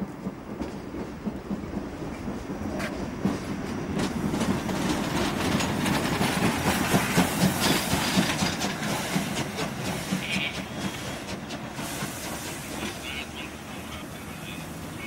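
A steam locomotive chugs past close by, building up and then fading.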